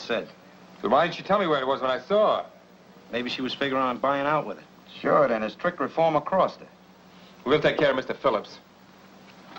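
A man speaks calmly and steadily.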